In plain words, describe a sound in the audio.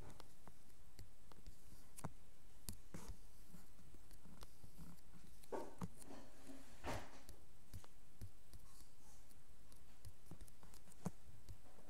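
Blocks are placed in a video game with soft tapping clicks.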